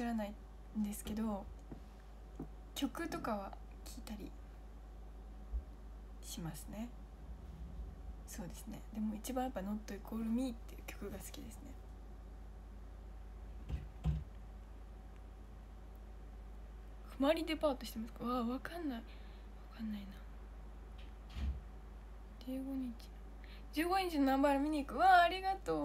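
A young woman talks softly and casually close to a microphone, with pauses.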